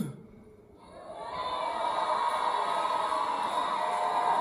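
An audience cheers and applauds in a large hall.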